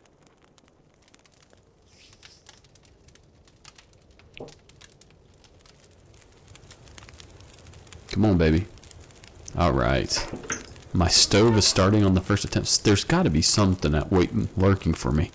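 A fire crackles softly.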